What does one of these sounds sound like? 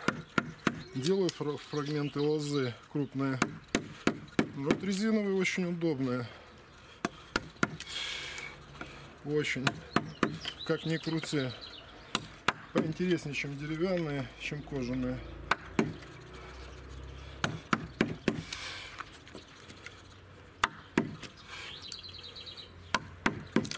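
A mallet knocks sharply on a chisel, cutting into wood.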